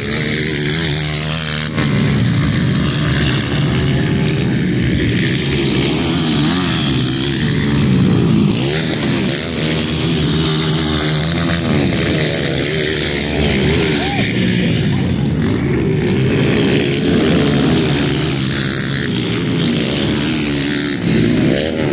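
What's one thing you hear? Dirt bike engines rev and whine up and down nearby.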